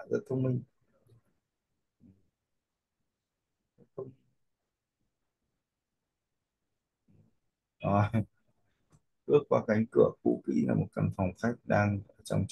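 A man talks calmly into a close microphone, with pauses.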